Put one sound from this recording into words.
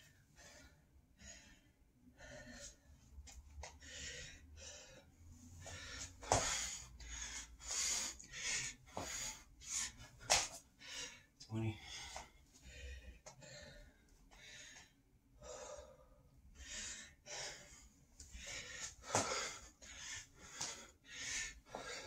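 Sneakers thud and shuffle on the floor.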